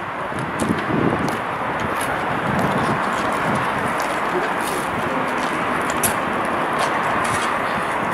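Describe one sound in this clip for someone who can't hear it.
Footsteps scuff on stone paving.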